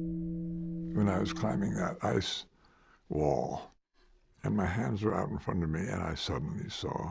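An elderly man speaks calmly and with emphasis, close to a microphone.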